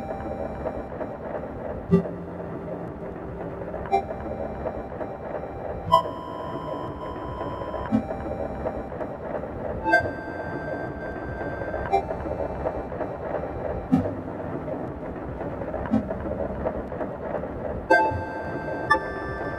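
Electronic drum machines play a steady beat.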